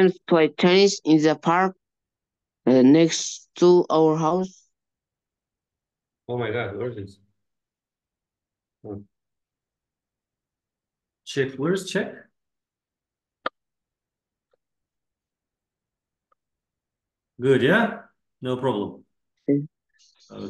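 A man speaks calmly through a webcam microphone, in short phrases with pauses.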